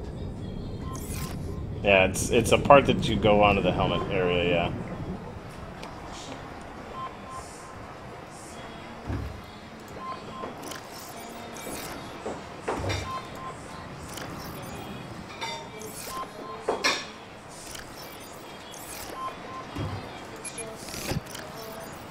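Short electronic beeps and clicks sound now and then.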